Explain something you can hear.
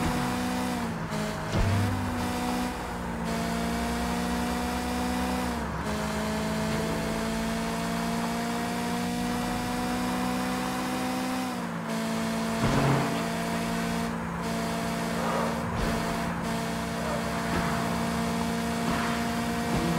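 Tyres screech as a car drifts around corners.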